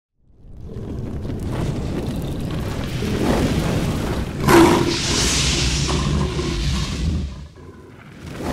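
Fire roars and whooshes.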